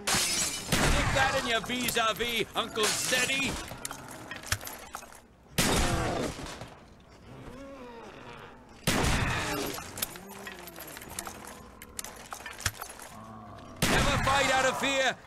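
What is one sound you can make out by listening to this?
Gunshots bang from a game.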